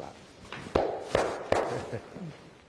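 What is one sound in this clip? A man pats another man firmly on the back.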